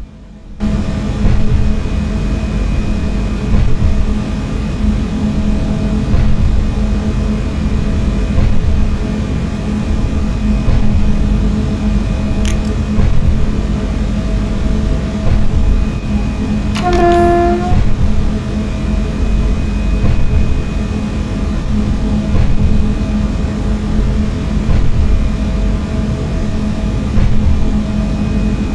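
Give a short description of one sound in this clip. Train wheels rumble steadily on the rails.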